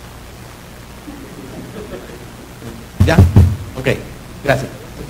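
A middle-aged man speaks into a microphone over loudspeakers.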